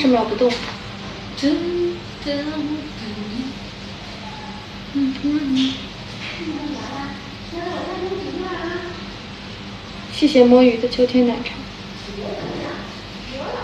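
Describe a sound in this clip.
A young woman speaks calmly and close by, her voice slightly muffled.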